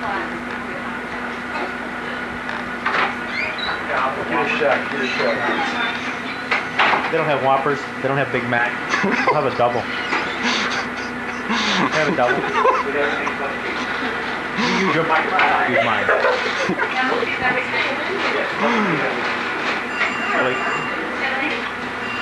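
Several men talk and laugh close by.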